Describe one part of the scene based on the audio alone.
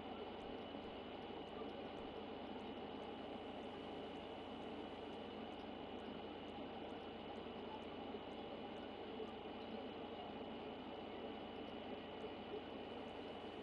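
Menu clicks tick at a regular pace.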